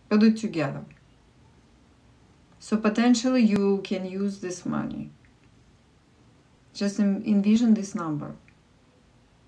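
A woman speaks calmly and close up, in short phrases with pauses.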